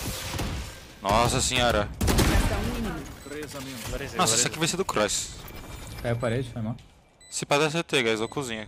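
A young man talks with animation, close into a microphone.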